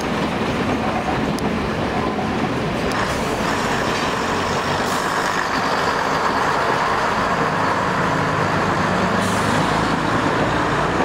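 A diesel engine drones loudly as the train pulls by.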